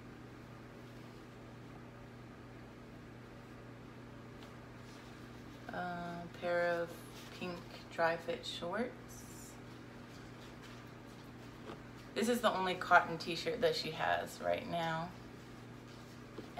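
Fabric rustles as clothes are folded.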